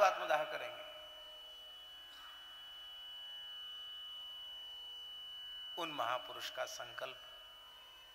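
An elderly man speaks with animation into a microphone, in an echoing space.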